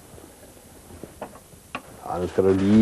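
Wood knocks lightly a few times.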